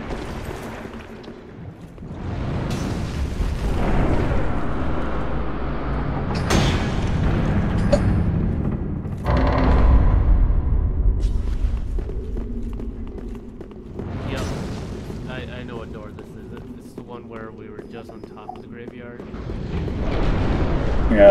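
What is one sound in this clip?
Armoured footsteps clank and thud on stone.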